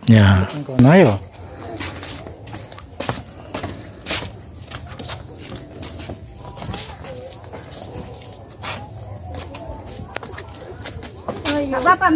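Footsteps tap on a wooden boardwalk.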